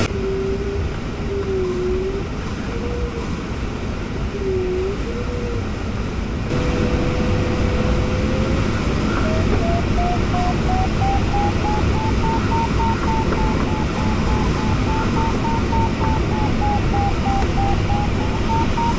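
A flight instrument beeps with a wavering pitch that rises higher over time.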